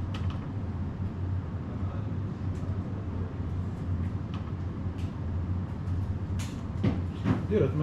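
A man types on a keyboard with soft clicks.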